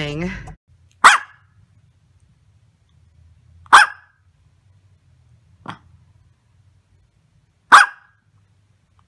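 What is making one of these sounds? A small dog barks sharply a few times.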